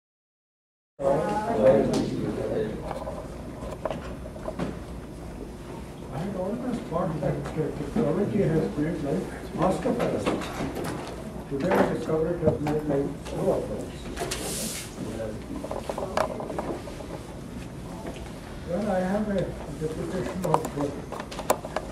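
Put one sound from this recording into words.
An elderly man speaks calmly in a small room, heard from a distance.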